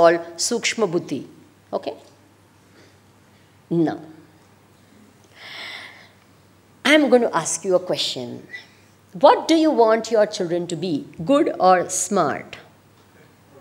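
A woman speaks with animation through a microphone, in a large hall.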